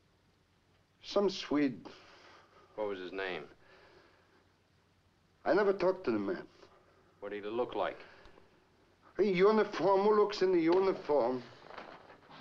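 A man speaks in a low, tired voice nearby.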